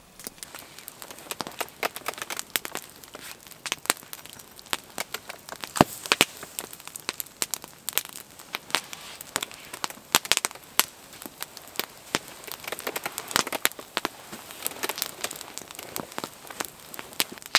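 A wood fire crackles and pops up close.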